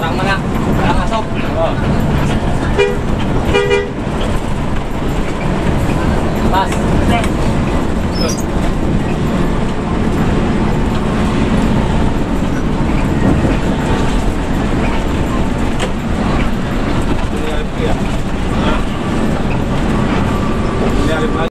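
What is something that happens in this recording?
Tyres rumble on a highway.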